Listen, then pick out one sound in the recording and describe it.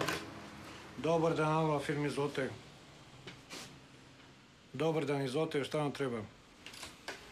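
A middle-aged man speaks calmly into a telephone, close by.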